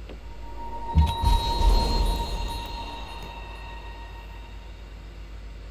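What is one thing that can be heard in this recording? A bright chime rings and slowly fades.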